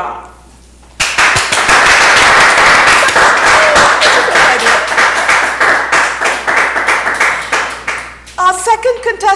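Hands clap in loud, fast applause.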